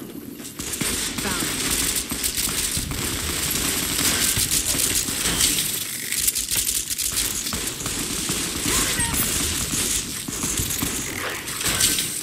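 Gunshots crack in a fight.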